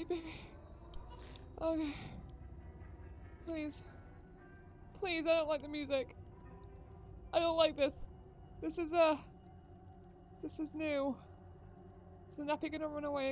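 A young woman talks with animation through a headset microphone, close by.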